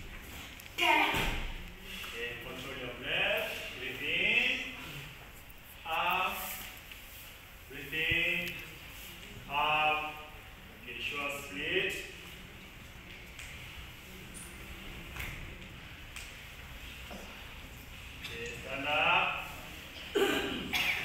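A man shouts short commands loudly in an echoing hall.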